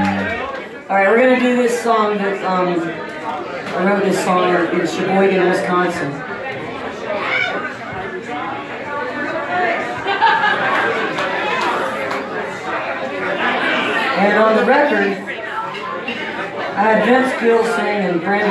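A band plays live with electric guitars.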